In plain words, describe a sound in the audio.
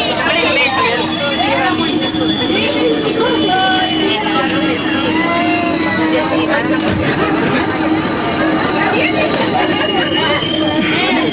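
A subway train rumbles and rattles along the tracks.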